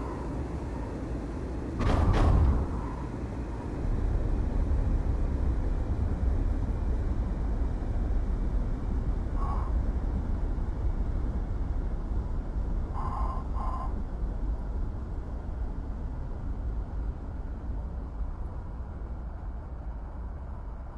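A jet engine rumbles steadily.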